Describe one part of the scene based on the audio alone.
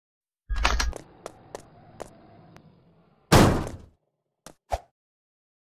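Footsteps clank on a metal ladder.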